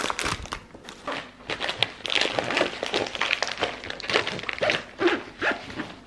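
A zipper is pulled closed.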